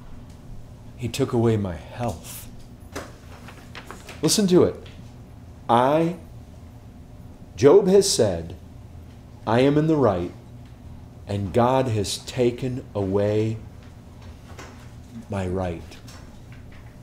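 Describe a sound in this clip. A man speaks aloud in short bursts, close by.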